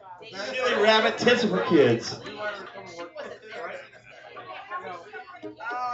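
A man strums an acoustic guitar.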